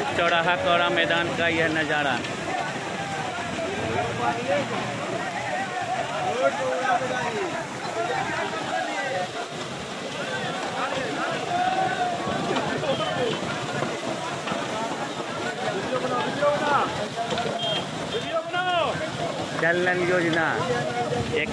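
Water gushes and splashes loudly from a burst pipe.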